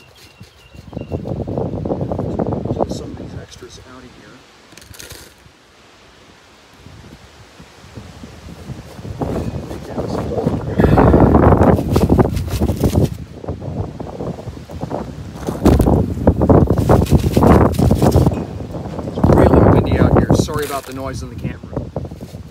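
Gravel and clay pebbles crunch and rattle as gloved hands press them down in a pot.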